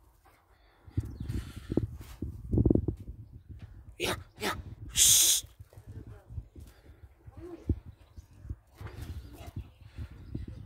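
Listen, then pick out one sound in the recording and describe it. A dog's paws thud softly as it runs across grass.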